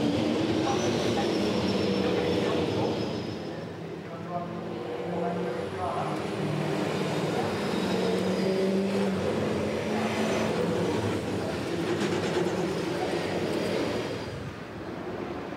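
Racing car engines rumble and growl closely as the cars pass at low speed.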